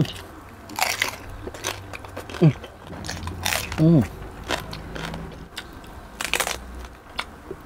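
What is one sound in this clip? A young man chews loudly with wet, smacking sounds close to a microphone.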